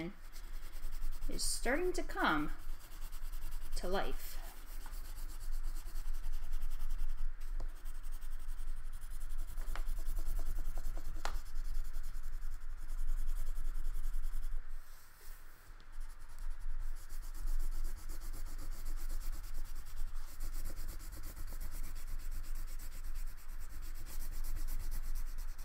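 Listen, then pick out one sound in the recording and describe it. Crayons scratch and rub across paper.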